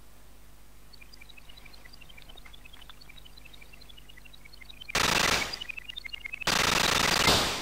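Rapid high electronic shots chirp.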